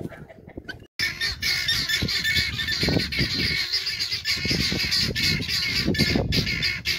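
A flock of guineafowl chatters loudly and continuously.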